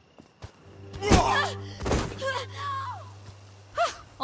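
A girl cries out in alarm.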